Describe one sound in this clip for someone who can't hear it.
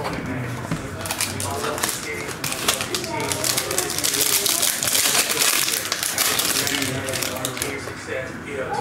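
Foil wrappers crinkle and tear as they are opened.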